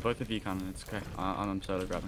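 Water trickles into a wooden bucket.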